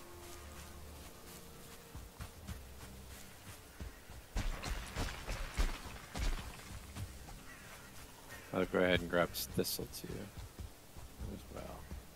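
Footsteps thud through grass and undergrowth.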